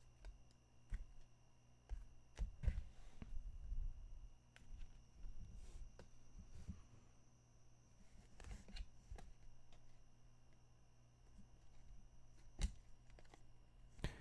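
Trading cards rustle and shuffle in hands.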